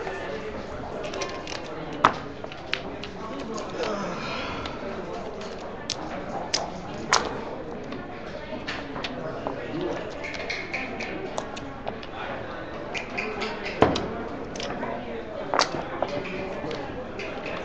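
Plastic checkers click and clack as they are moved across a wooden board.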